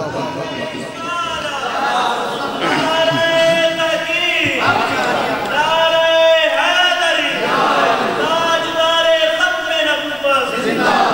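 A man chants in a long, drawn-out melodic voice through loudspeakers.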